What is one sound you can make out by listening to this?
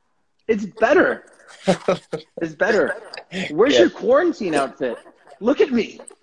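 A second man laughs over an online call.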